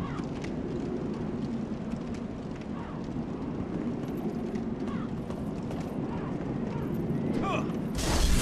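Armoured footsteps run over stone cobbles.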